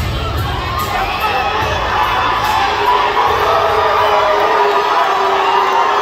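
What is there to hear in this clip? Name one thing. Entrance music booms loudly over arena loudspeakers.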